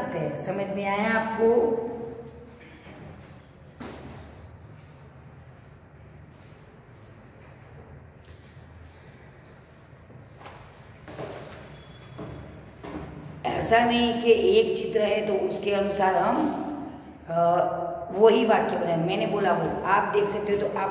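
A woman speaks with animation, close by, in a slightly echoing room.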